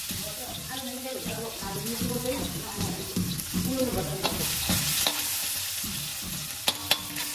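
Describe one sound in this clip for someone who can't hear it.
Sliced onions sizzle in oil in a wok.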